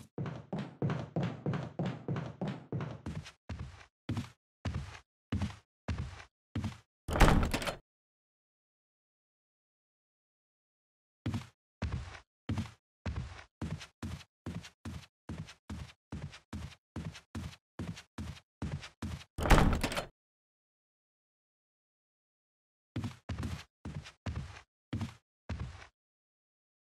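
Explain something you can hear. Footsteps thud on wooden stairs and floorboards at a steady walking pace.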